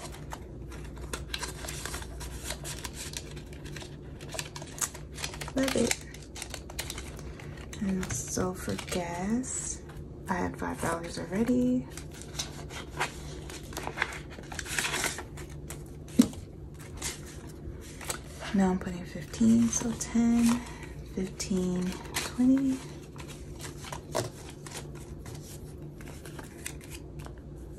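Paper banknotes rustle and crinkle close by.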